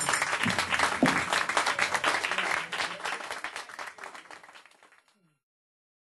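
A small band plays ukulele and fiddle in a lively room.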